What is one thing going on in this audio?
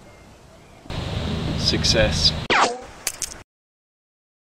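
A young man speaks into a microphone outdoors.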